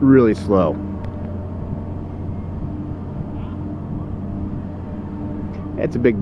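A machine engine hums steadily nearby.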